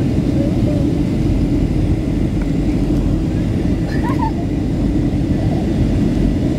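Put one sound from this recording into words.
A jet engine roars steadily in an airplane cabin.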